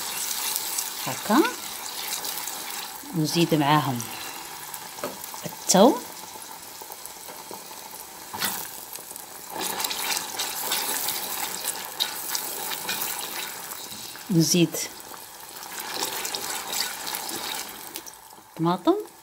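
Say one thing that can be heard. A spatula scrapes and stirs against the pot.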